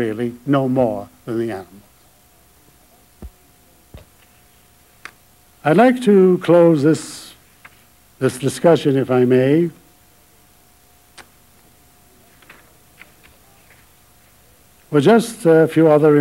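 An elderly man speaks slowly and emotionally into a microphone, with long pauses.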